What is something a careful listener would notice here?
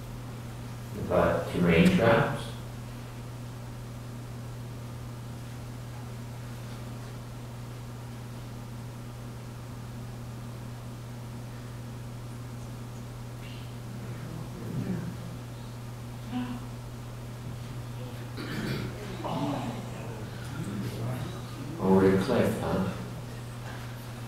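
A man speaks calmly through a microphone in a large room, with long pauses.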